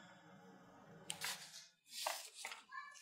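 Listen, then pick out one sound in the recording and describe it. Sheets of paper rustle in a man's hands.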